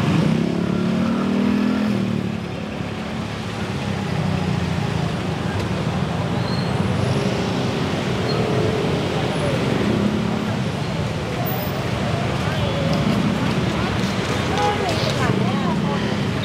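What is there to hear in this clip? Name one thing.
Slow-moving city traffic rumbles with idling engines.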